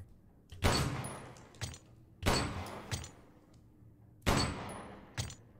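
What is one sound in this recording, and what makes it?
Gunshots from a pistol crack several times, echoing in a cave.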